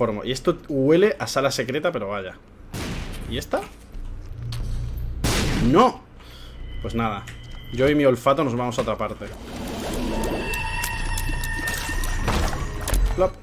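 Video game sound effects pop and splat as shots hit enemies.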